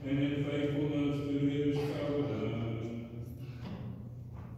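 A choir sings a sustained chant in a large echoing hall, and the last note fades away.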